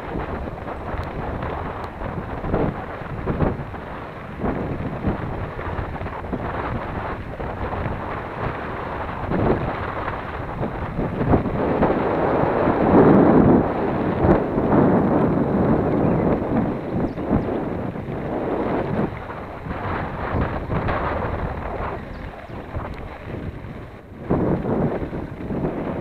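Mountain bike tyres crunch and rattle over a gravel road on a descent.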